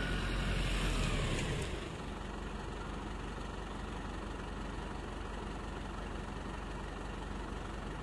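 An ambulance drives off and fades into the distance.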